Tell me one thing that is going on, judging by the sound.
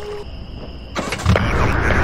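A vehicle engine rumbles.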